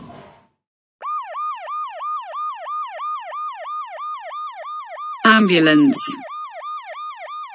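An ambulance siren wails in quick, repeating rising and falling cycles.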